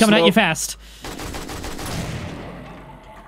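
A rifle fires a rapid burst that echoes and slowly dies away.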